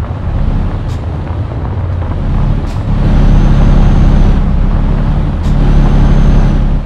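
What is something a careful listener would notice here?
A diesel truck engine drones.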